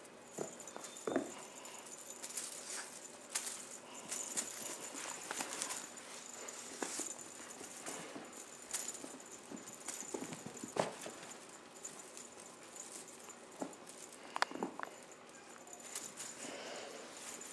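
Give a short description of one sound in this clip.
Kittens scamper and pounce on carpet.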